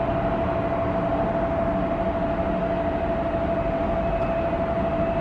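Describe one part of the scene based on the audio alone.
Jet engines whine and roar steadily across open ground.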